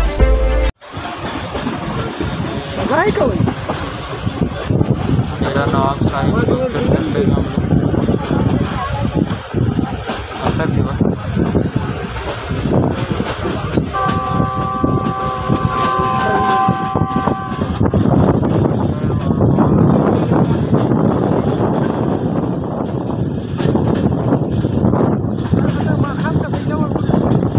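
A passenger train rumbles along, its wheels clattering over the rails.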